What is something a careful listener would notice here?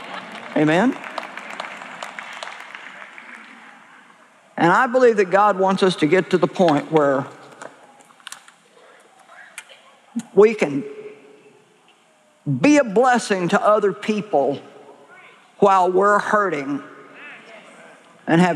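A middle-aged woman speaks forcefully through a microphone, pausing between phrases.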